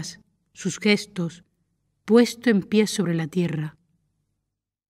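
A woman speaks calmly and close up.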